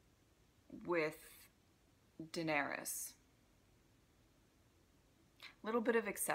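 A young woman speaks calmly and close to a microphone, in short bursts with pauses.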